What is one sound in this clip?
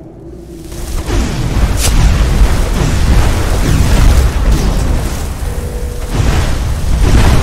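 A fiery explosion roars and rumbles loudly.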